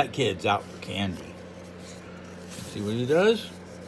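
A paper page rustles as it turns.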